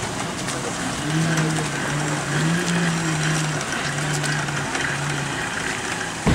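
A vehicle winch hums steadily as it pulls a cable.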